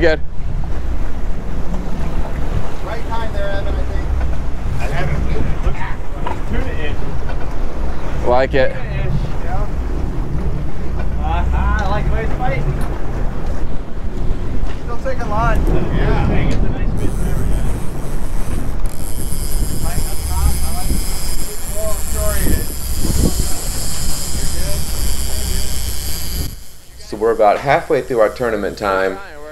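Men call out to each other with excitement on a boat.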